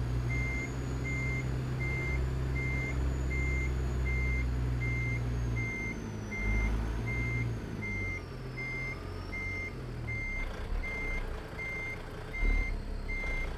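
A reversing alarm beeps at an even pace.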